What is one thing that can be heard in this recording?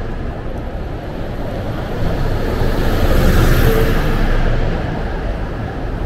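A bus roars past close by, then fades.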